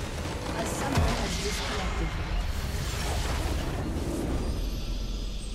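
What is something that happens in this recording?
A large building explodes with a deep crashing rumble.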